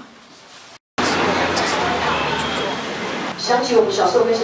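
A crowd murmurs and chatters close by.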